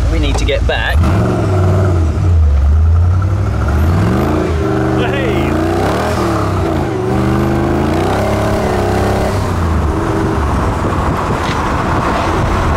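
A car engine rumbles and rises and falls in pitch as the car accelerates.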